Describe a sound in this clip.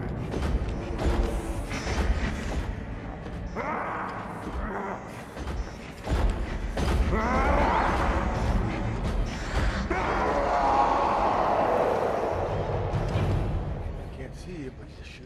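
Bodies thud against a car's front.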